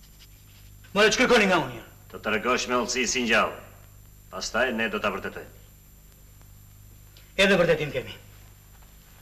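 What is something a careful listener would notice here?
Adult men talk in turn, calmly and close by.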